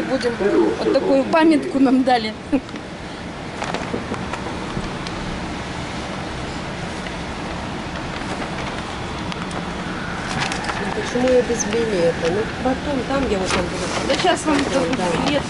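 An older woman talks nearby in a conversational voice.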